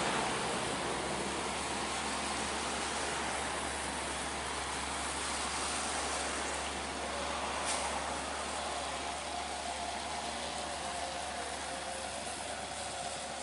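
A heavy truck engine rumbles as it drives slowly past on a wet road.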